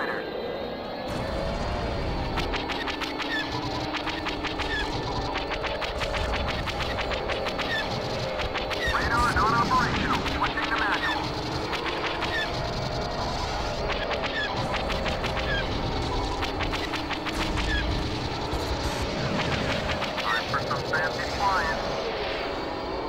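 Laser cannons fire in rapid bursts of sharp zaps.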